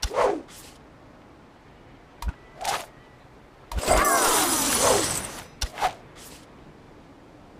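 Game menu sounds pop and swoosh.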